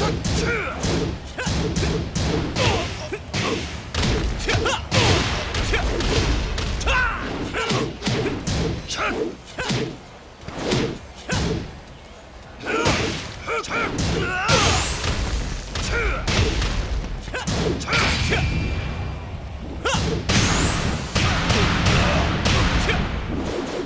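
Fighters grunt and shout with effort.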